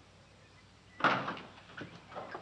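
A truck door clunks open.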